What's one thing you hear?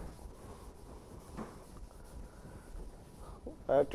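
A duster rubs chalk off a board.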